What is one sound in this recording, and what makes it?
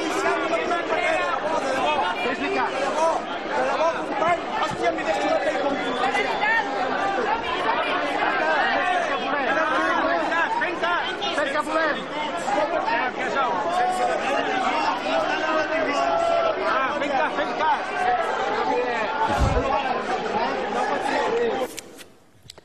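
A large crowd of men and women chants and cheers loudly nearby.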